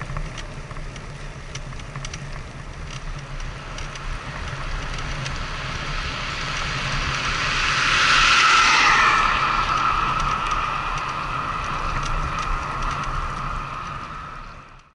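Tyres hum steadily on a wet road.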